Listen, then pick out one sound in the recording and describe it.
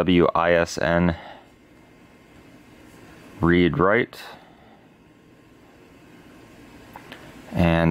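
A finger clicks softly on a laptop touchpad.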